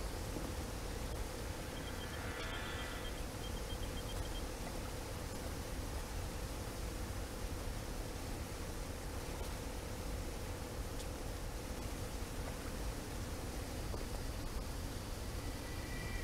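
Flames roar and hiss steadily.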